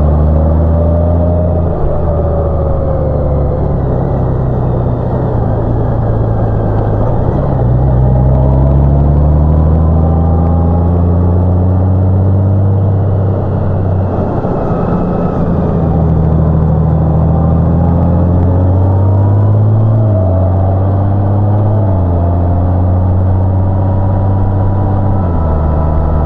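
A motorcycle engine hums steadily, rising and falling in pitch as it shifts gears.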